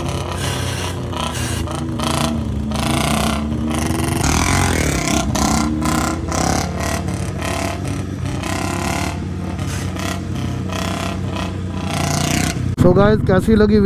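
A motorcycle engine roars and revs nearby.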